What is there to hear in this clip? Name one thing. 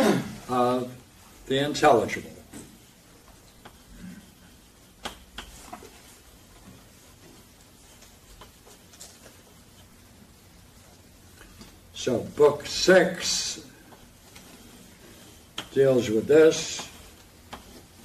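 An elderly man speaks calmly, pausing between phrases.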